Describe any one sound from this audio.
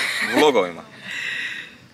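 A young woman laughs happily close by.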